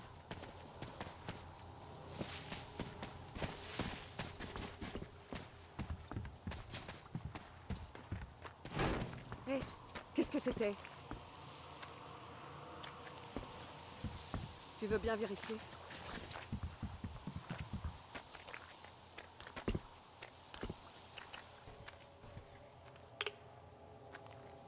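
Footsteps crunch over snow and gravel.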